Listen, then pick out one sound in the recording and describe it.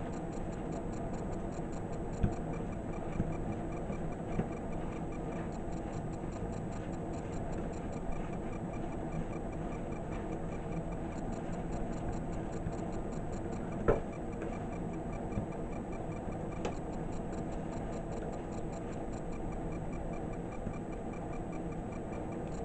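Small flames flicker and crackle softly on burning cloth.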